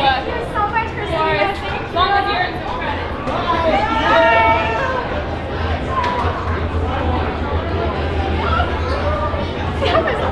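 A young woman talks cheerfully nearby.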